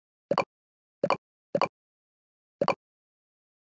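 Short soft pops sound as balls drop into place.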